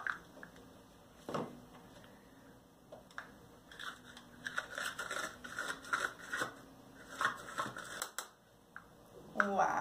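Garlic skins crackle as they are peeled.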